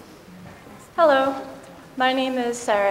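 A young woman speaks into a microphone in a large echoing hall.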